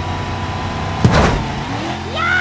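A truck crashes with a loud thud.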